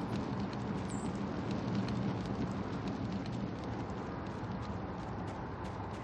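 Quick footsteps crunch on gravel.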